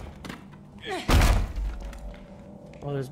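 A wooden door bursts open with a crack.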